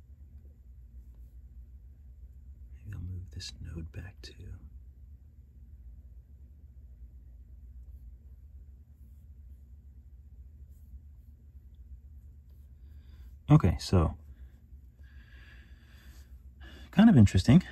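A stylus taps and slides softly on a glass tablet.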